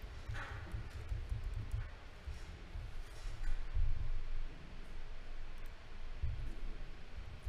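A man speaks quietly close to a microphone.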